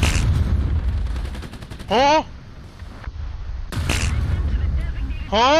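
A tank cannon fires with a loud boom and a rumbling tail.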